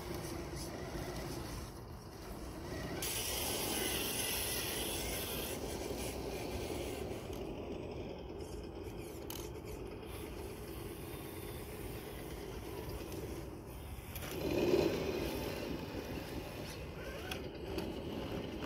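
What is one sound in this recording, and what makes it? A small electric motor whines steadily as a toy truck crawls over rock.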